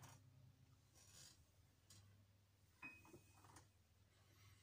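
A piano plays a few soft notes.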